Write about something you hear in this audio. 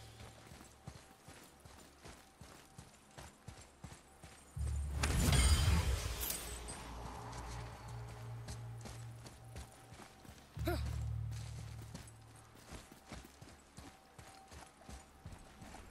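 Heavy footsteps thud steadily on stone.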